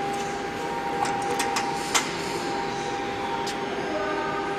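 Metal latches click and clack now and then.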